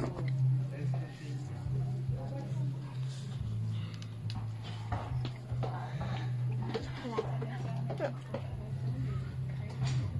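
A young girl giggles and laughs close by.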